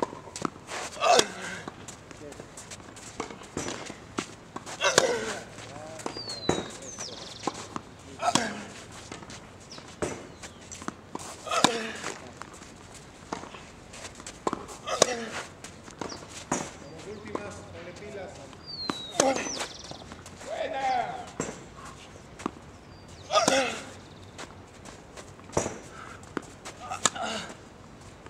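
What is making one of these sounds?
A young man grunts sharply with each stroke.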